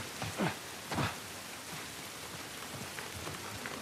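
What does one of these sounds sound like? Footsteps crunch on gritty ground.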